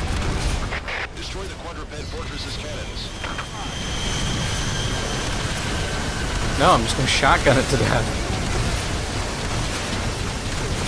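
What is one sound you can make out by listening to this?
Explosions boom and rumble in quick succession.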